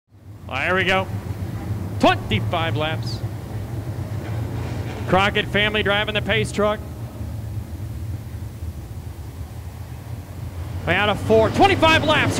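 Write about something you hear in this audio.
Race car engines rumble and roar together at close range.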